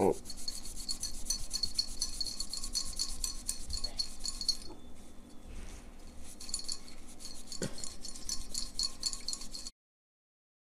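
Fingers rub and scrape across a metal heatsink.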